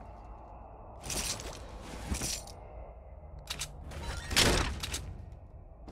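Short bright chimes sound as items are picked up.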